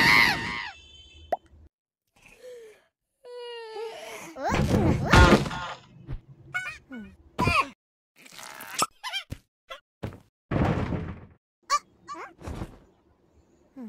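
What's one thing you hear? A cartoon cat chatters in a squeaky, high-pitched voice.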